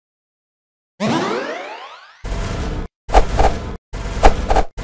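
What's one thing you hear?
Weapons clash in a quick game battle.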